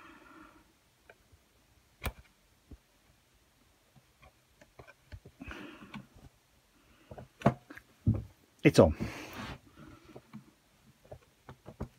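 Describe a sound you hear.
Small metal and plastic parts click and tap as a fitting is screwed into place.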